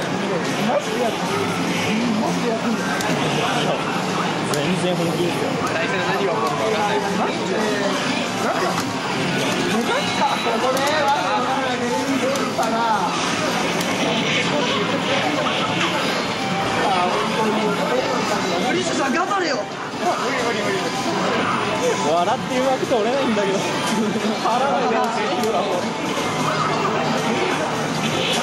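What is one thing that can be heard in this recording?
Fast arcade game music plays through a loudspeaker.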